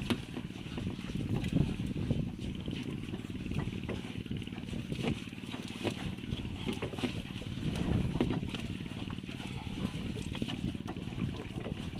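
A large fish thumps on wooden boards.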